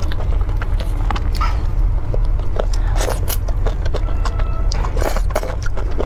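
A young woman chews and slurps food wetly, close to a microphone.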